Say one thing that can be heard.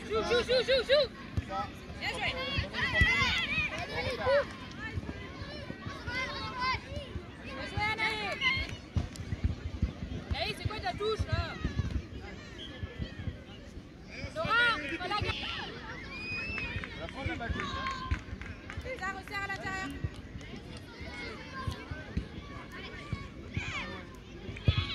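Young girls shout and call out to each other outdoors on an open field.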